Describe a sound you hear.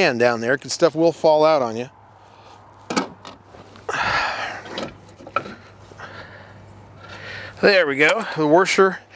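An adult man talks calmly, close by.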